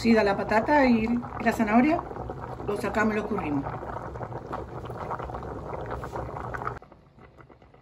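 Water bubbles and boils hard in a pot.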